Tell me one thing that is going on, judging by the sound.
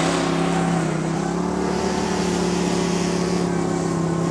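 A small petrol engine hums.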